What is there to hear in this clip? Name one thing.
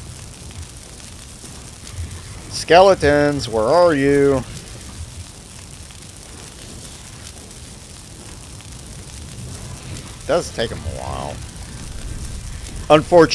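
Fire crackles and burns steadily.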